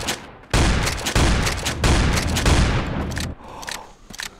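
A shotgun fires loud, booming blasts in quick succession.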